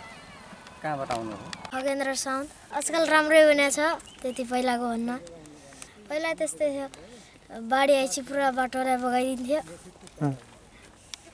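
A boy speaks cheerfully nearby, outdoors.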